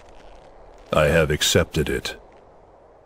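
A man speaks with a sly, calm tone.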